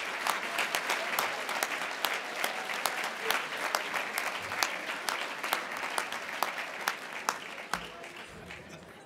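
A large crowd applauds in a big room.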